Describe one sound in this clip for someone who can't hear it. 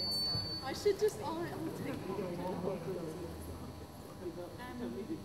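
A teenage girl talks nearby.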